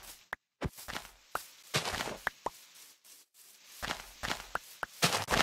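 Flowers pop with short soft clicks as they are picked.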